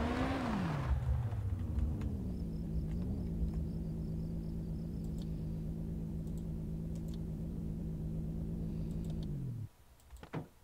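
A car engine idles steadily, then shuts off.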